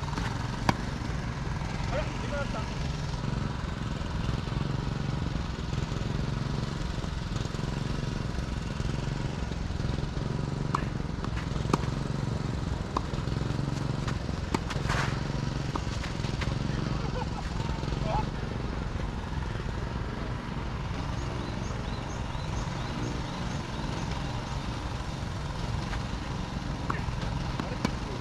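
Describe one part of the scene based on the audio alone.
A tennis ball is struck by rackets in a rally, with sharp pops.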